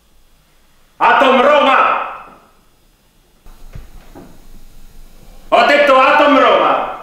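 A young man speaks forcefully.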